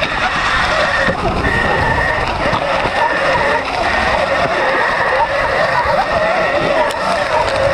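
A dirt bike engine whines and revs steadily.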